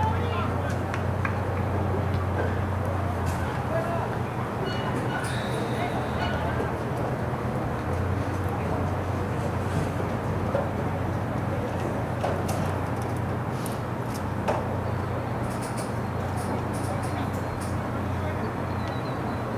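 Players shout across a large outdoor field.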